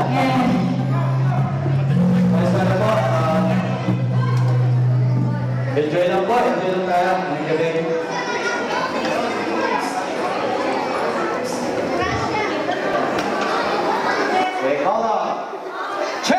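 A live band plays loudly in a hall.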